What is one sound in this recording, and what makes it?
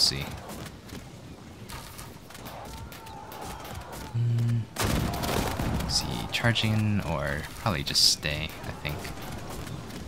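Soldiers clash in a distant battle, with a dull clamour of fighting.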